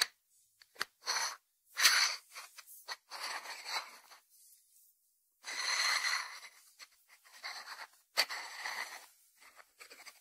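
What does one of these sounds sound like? Fingers rub and scratch against a ceramic dish.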